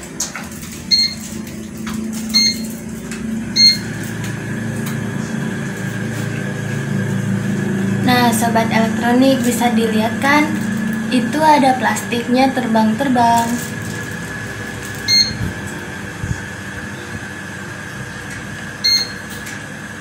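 A remote control beeps sharply several times.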